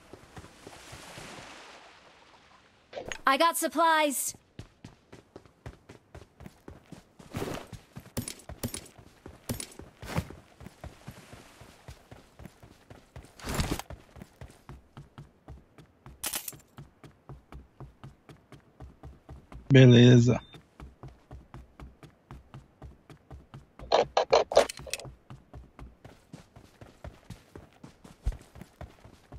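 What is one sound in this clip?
Footsteps run quickly over wooden boards and ground.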